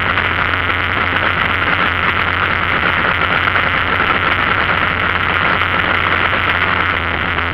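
Tyres roll steadily on an asphalt road.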